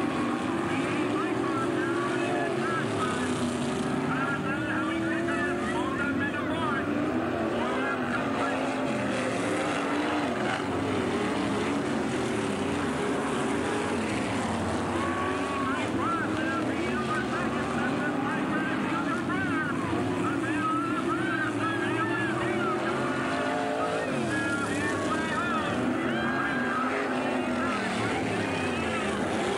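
Race car engines roar and whine as they speed around a track.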